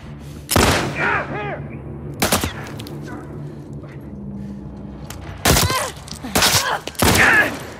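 Loud pistol shots ring out one after another, with a short echo.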